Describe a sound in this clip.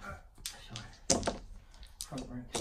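Dice clatter into a tray.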